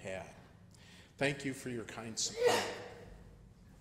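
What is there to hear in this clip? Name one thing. A middle-aged man speaks calmly into a microphone, in a room with some echo.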